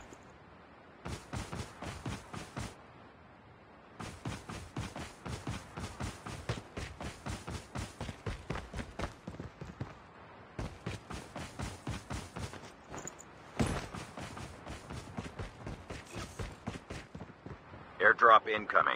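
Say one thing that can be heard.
Footsteps run quickly over grass and ground.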